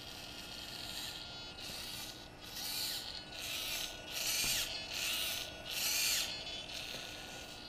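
A small motor whirs in short bursts.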